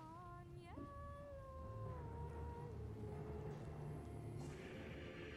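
A magical blast roars and rumbles.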